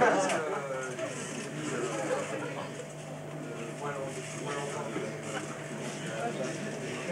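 A bass guitar plays low notes through an amplifier.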